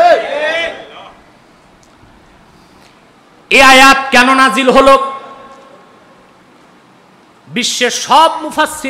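A man preaches into a microphone in a loud, sing-song voice, with pauses between phrases.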